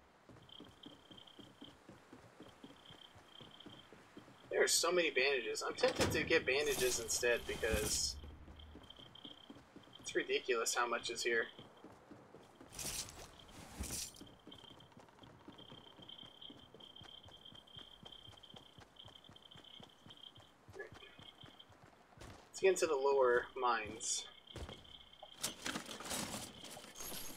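Footsteps thud quickly on wooden floors.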